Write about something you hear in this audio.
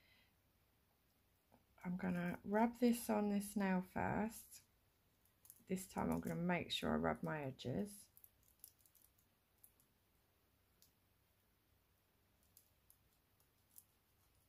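A soft pad rubs and crinkles against a small piece of foil.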